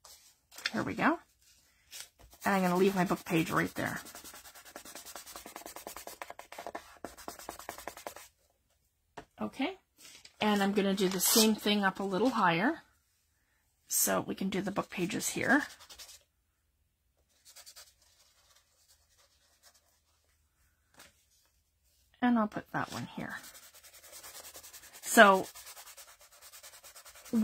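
Paper rustles softly as hands press and smooth it down.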